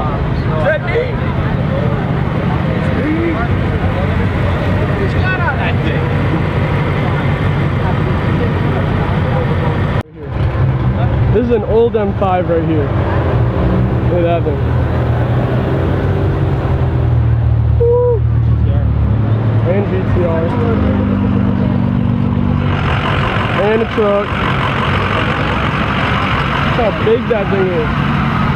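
A crowd of people chatters and talks outdoors nearby.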